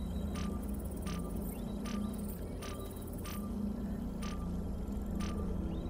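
A holographic device beeps in a steady, regular rhythm.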